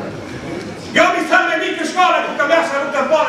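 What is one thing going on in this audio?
Men shout in chorus.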